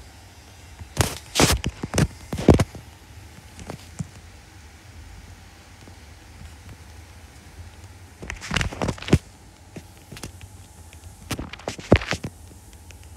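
Fingers tap on a touchscreen keyboard.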